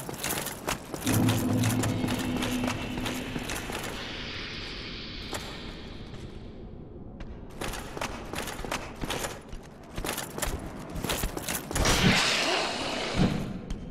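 Armoured footsteps clank on a stone floor.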